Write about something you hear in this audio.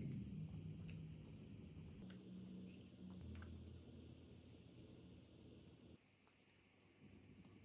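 A small child chews and slurps juicy fruit close by.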